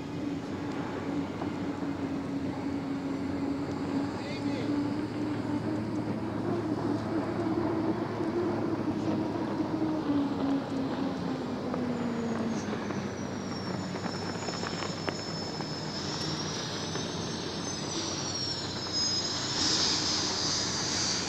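Spray hisses off the water behind a speeding boat.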